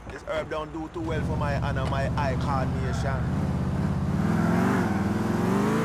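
A car engine starts and revs, rising in pitch as the car pulls away.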